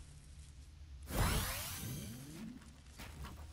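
A game chest glimmers and bursts open with a chime.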